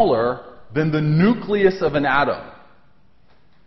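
A man lectures through a microphone.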